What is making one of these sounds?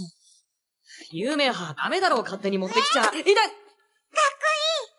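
A young girl exclaims excitedly in a high voice.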